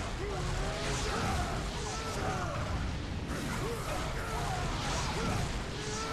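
Blows and metal clashes ring out in a fight.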